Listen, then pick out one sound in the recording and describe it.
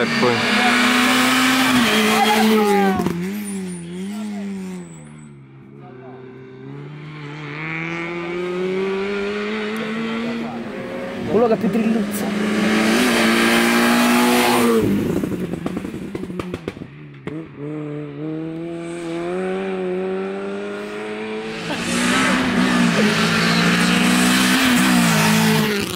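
A rally car engine roars and revs hard as it speeds past close by.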